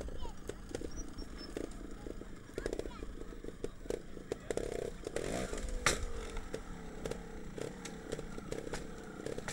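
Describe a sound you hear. A motorcycle engine revs in short sharp bursts close by.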